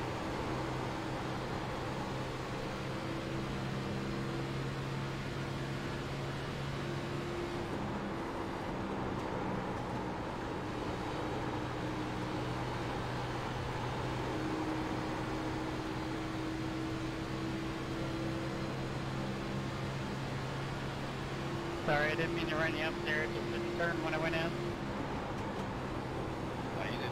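A race car engine drones steadily at high revs.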